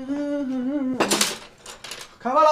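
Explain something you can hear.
Bowls clink onto a table.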